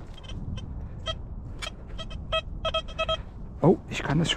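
A metal detector beeps in short, repeated tones.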